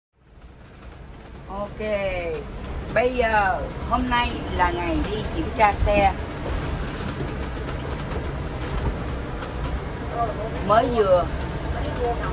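An engine hums steadily with road rumble inside a moving vehicle.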